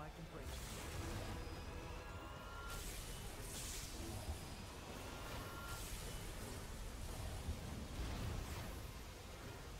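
Sword strikes clash and slash rapidly.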